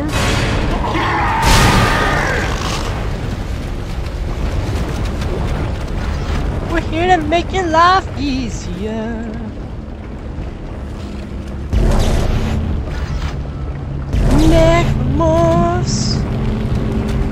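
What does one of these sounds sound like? A futuristic weapon fires in loud bursts.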